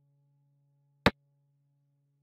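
A wooden game piece clacks sharply onto a board once.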